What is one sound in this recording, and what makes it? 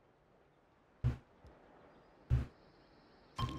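Two short clicks sound from a game.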